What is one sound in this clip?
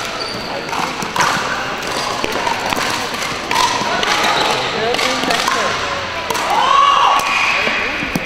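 Paddles hit plastic balls with sharp pops in a large echoing hall.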